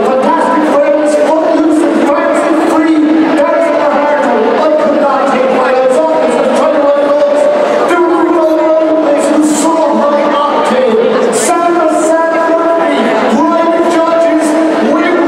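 Loud pop music with singing plays over loudspeakers in a large echoing hall.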